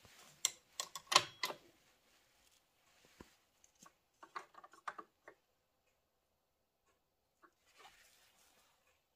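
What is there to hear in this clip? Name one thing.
Metal tools clink and click.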